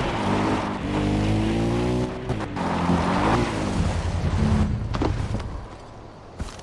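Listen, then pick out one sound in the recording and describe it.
A quad bike engine rumbles and revs.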